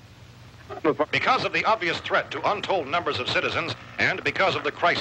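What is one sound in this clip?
A radio blares loudly.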